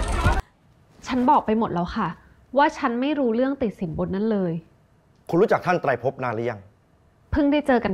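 A young woman speaks calmly and clearly up close.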